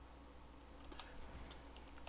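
Blocks break with a quick crunching pop.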